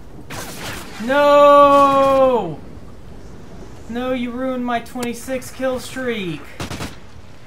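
A young man exclaims loudly and with animation into a microphone.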